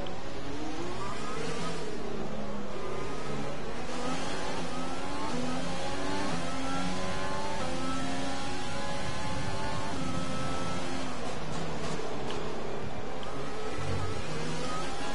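A racing car engine screams loudly, revving up through the gears and dropping as it slows for corners.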